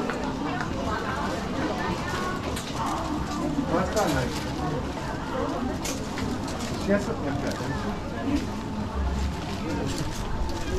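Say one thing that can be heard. A crowd of shoppers chatters all around in a busy indoor hall.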